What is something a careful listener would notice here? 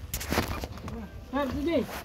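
A broom scrapes across dirt ground.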